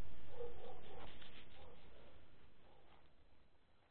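Grass and leaves rustle close by.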